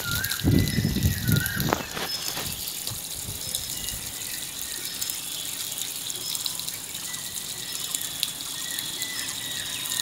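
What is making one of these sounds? Water pours from a hose and splashes onto wet ground.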